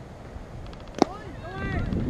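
A metal bat cracks sharply against a ball.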